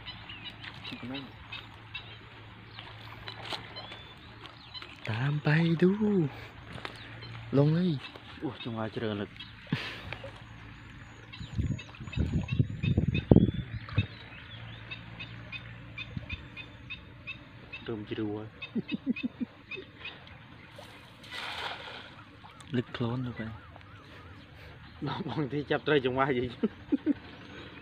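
Feet slosh and splash through shallow water.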